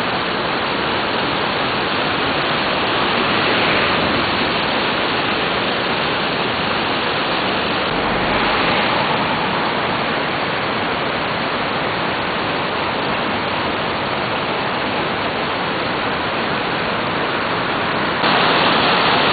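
A river rushes steadily past.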